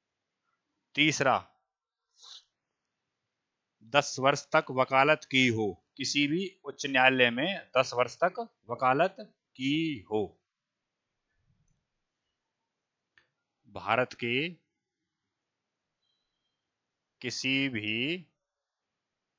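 A man speaks into a headset microphone in short bursts, explaining calmly.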